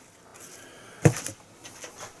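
A small metal can is set down on cardboard with a soft knock.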